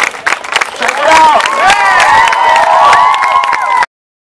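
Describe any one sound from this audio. A crowd cheers and whistles loudly.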